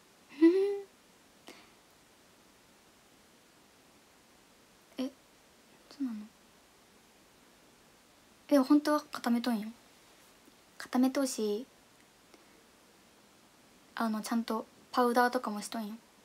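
A young woman speaks softly and casually in short bursts, close to a microphone.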